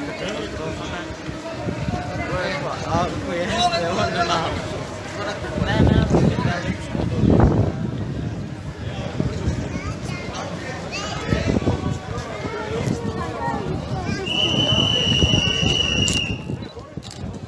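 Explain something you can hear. Footsteps of many people shuffle on pavement.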